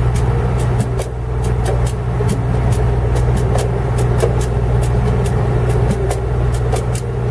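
Drums beat a sharp rhythm.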